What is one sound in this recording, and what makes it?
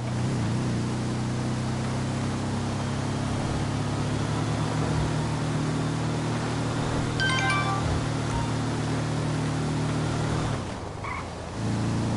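A buggy engine drones steadily as it speeds along a road.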